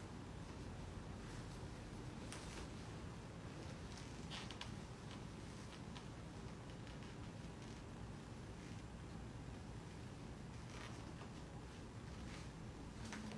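Shoes tap on a hard floor.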